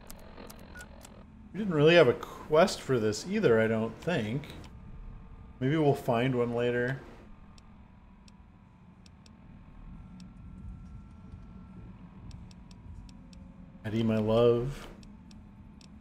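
Soft clicks tick as menu entries are scrolled through.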